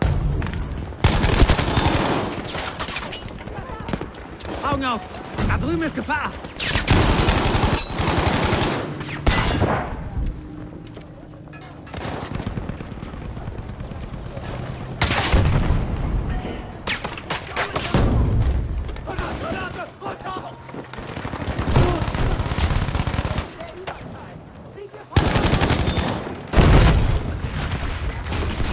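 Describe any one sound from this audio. Automatic gunfire rattles in rapid, loud bursts.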